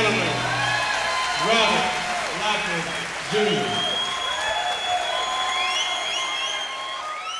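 A guitar plays a bluesy melody with sliding notes.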